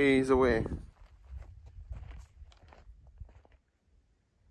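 Footsteps crunch on dry sandy ground.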